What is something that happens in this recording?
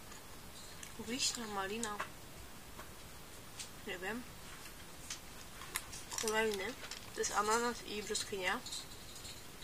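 A young woman speaks quietly and close by, in short bursts with pauses.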